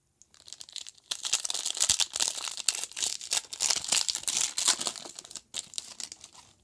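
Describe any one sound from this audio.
A foil wrapper crinkles and tears as a pack is ripped open.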